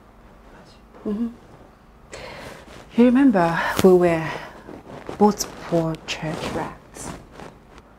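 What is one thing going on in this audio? A second young woman speaks coolly, close by.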